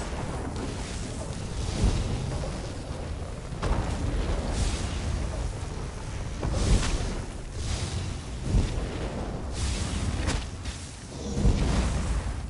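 Fiery battle effects crackle and boom.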